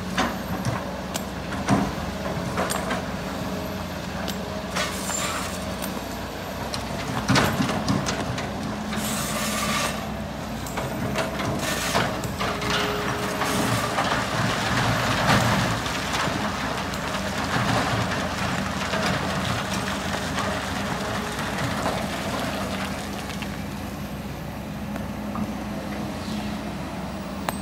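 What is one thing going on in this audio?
Rocks and earth clatter as an excavator bucket scrapes the ground.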